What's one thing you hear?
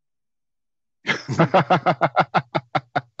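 A woman laughs heartily over an online call.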